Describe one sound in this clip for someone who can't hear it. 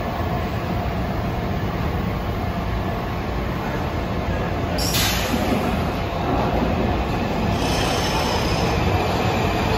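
A subway train rolls into an echoing station with a low rumble.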